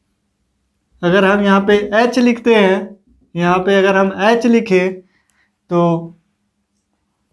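A young man speaks clearly and steadily, close by.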